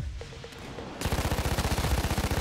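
A machine gun fires a rapid burst.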